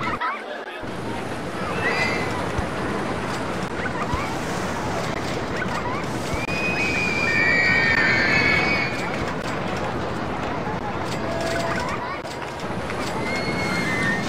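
A roller coaster train rumbles along its track.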